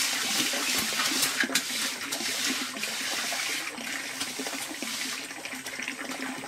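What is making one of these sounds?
A trowel scrapes and rasps across wet cement.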